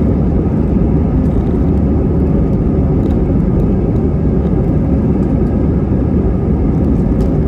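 Jet engines roar steadily from inside an airplane cabin.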